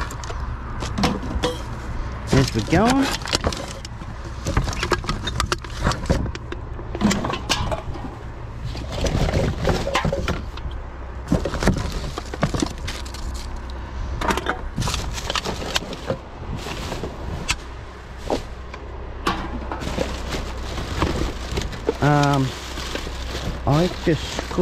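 Plastic bags and cardboard rustle and crinkle.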